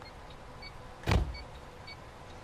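A bus door opens with a hiss and a thud.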